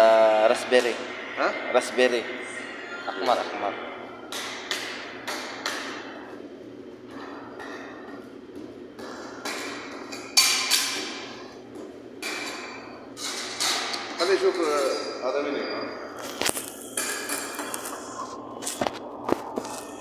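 Metal spatulas scrape and tap against a metal plate.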